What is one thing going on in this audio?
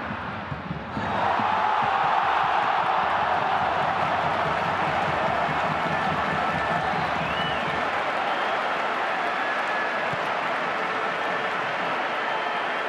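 A large stadium crowd erupts in loud cheering after a goal.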